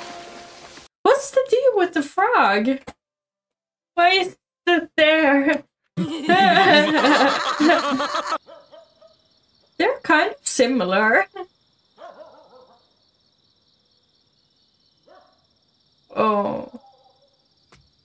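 A young woman talks and laughs with animation, close to a microphone.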